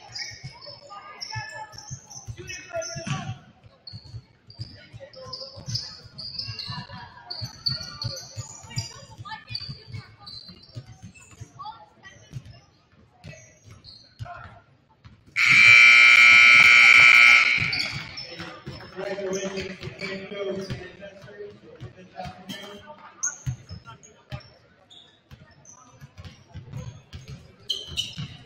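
Sneakers squeak sharply on a gym floor.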